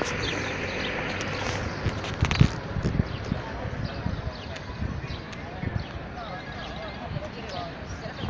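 Men and women chat quietly at a distance, outdoors.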